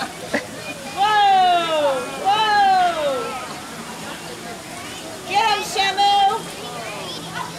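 A small child squeals and shrieks loudly nearby.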